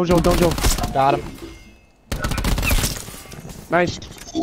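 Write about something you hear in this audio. Gunfire crackles in rapid bursts from a game.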